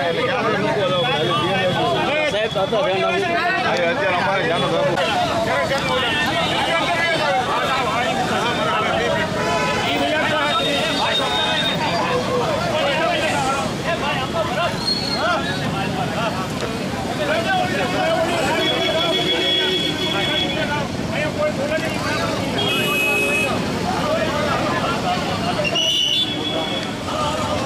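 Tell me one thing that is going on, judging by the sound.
A crowd of men argue loudly outdoors.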